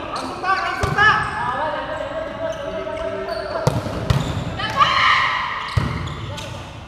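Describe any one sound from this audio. A basketball thuds against the floor.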